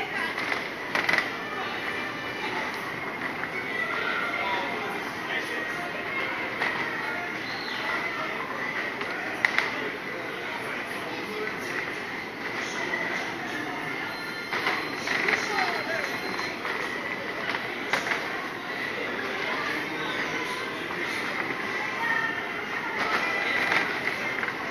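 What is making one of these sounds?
Riders chatter and call out from the spinning cups.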